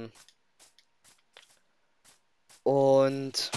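Soft footsteps thud on grass.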